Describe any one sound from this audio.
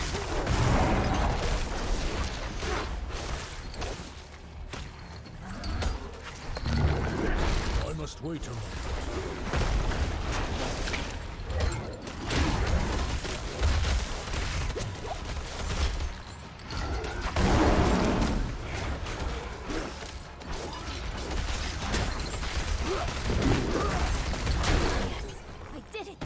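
Game spells burst and explode with deep booms.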